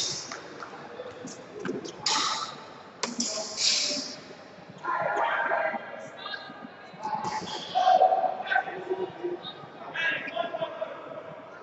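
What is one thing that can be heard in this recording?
Voices of several men and women echo in a large hall.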